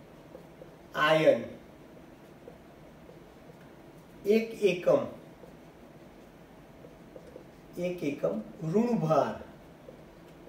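A man speaks calmly, in short phrases.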